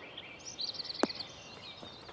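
A golf ball thuds as it lands and bounces on grass.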